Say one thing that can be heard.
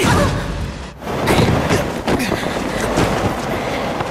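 Two bodies crash heavily onto hard ground with a loud rumbling impact.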